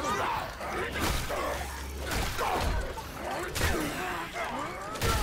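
Heavy melee blows thud and squelch into flesh.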